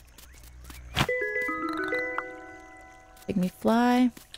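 A bright, short chime jingle rings out and fades.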